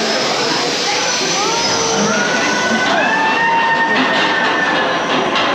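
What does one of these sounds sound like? Metal wheels squeal on a roller coaster track.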